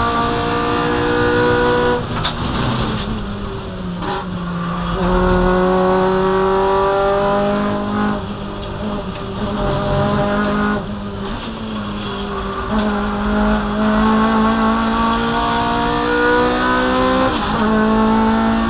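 A race car engine roars loudly from inside the cabin, rising and falling in pitch as the driver shifts gears.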